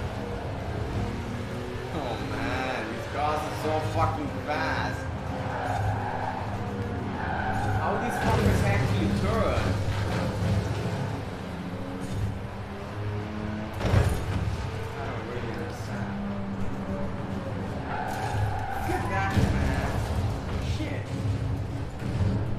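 A sports car engine roars at high revs throughout.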